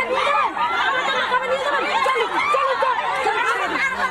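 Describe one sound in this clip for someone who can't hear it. A woman shouts angrily into a microphone.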